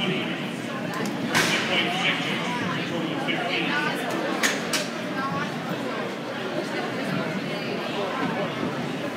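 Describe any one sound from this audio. A crowd of spectators chatters in a large echoing arena.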